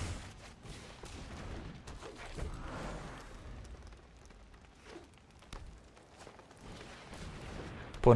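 A magical whoosh sweeps past.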